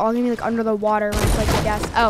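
Gunshots crack from a video game.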